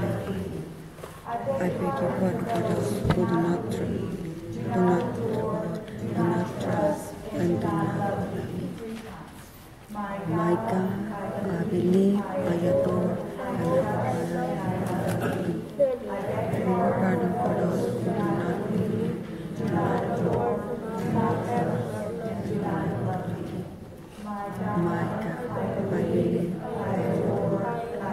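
Children speak in turn, reading out lines in an echoing hall.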